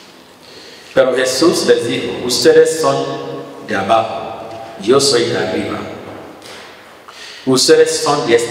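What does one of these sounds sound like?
A man speaks calmly into a microphone, heard through a loudspeaker in an echoing room.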